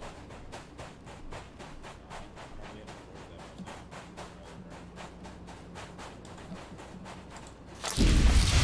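Quick footsteps crunch on sand.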